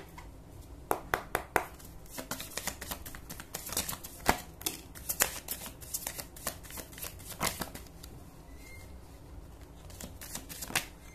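Cards riffle and flick as a deck is shuffled by hand.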